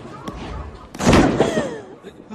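A body thuds heavily onto a hard floor.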